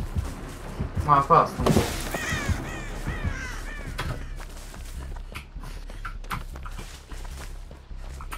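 Quick footsteps run through grass.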